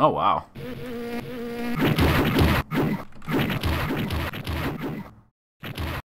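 Motorbike engines roar in an arcade game.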